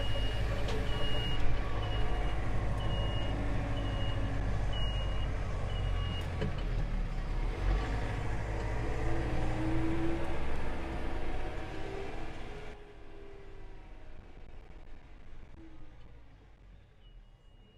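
A tractor engine runs loudly close by, then fades as it drives away.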